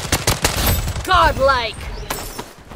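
A game chime rings out for a kill.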